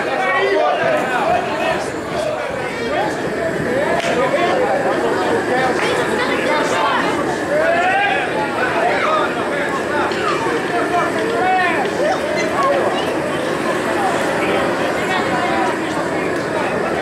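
A crowd of men chatter and call out loudly outdoors.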